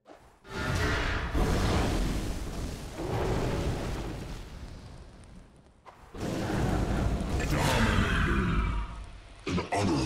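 Loud magical blasts and impacts crash in a video game.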